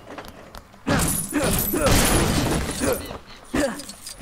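Wooden pieces clatter as something breaks apart.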